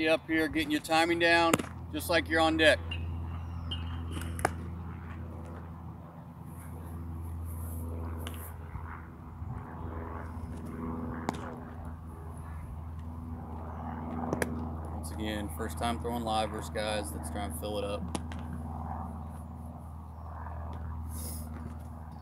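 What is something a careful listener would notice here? A baseball pitcher's cleats scuff on a dirt mound.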